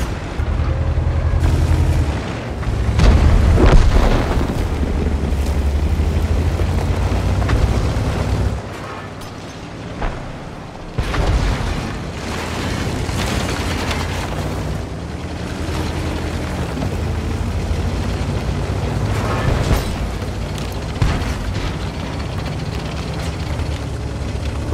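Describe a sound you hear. A tank engine rumbles and clatters steadily as the tank drives.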